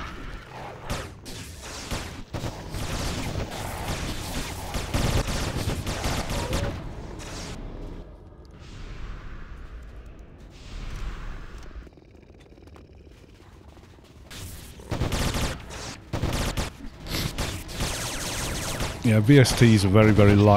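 Spells and weapons clash and burst in a busy game battle.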